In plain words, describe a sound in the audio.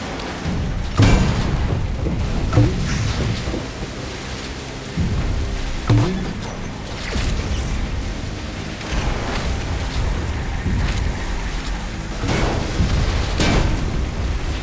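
Explosions boom now and then.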